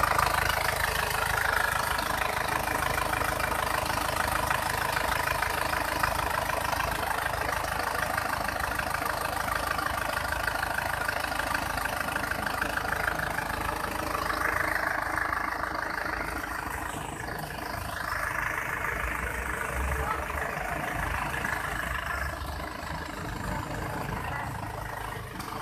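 A four-cylinder turbodiesel engine idles with a steady clatter, with the bonnet open.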